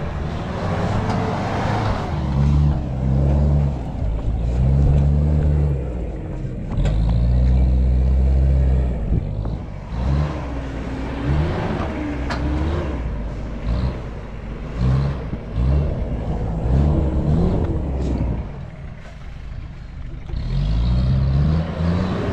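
Tyres crunch over loose dirt and rocks.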